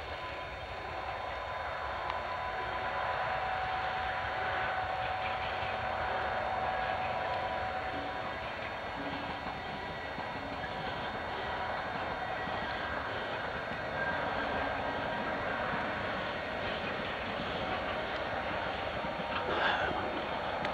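A long freight train rumbles along in the distance.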